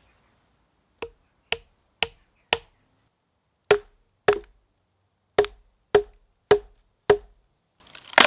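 A wooden mallet knocks sharply on wood.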